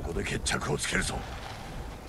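A man speaks in a low, grim voice.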